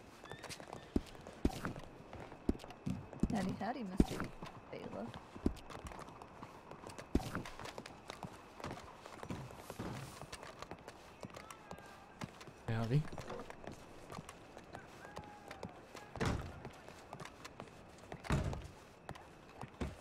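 Footsteps walk slowly across a wooden floor indoors.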